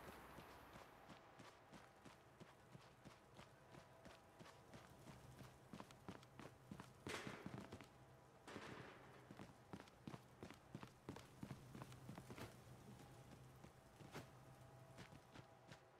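Quick footsteps run across a hard floor.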